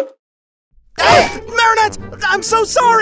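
A young man apologizes in a flustered, hurried voice.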